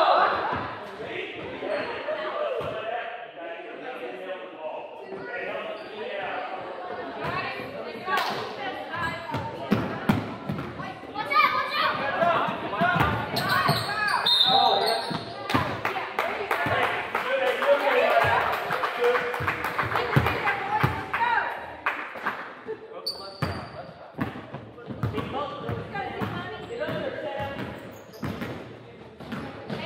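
Many people talk and chatter in a large echoing gym.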